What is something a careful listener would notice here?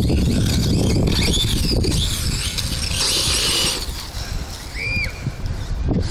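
A small electric motor whines as a toy car races and revs.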